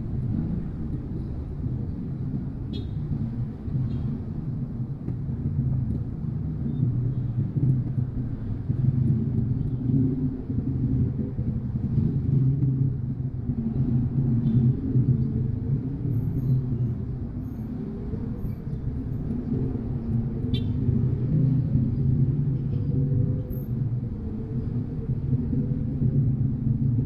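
Motorcycle engines putter close by in slow traffic.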